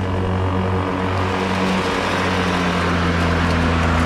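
A lawn mower grows loud as it comes up close.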